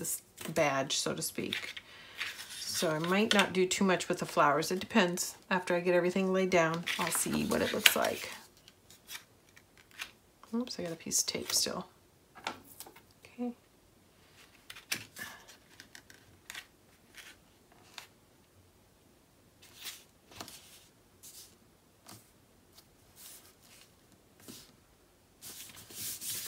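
Paper sheets rustle and slide on a table close by.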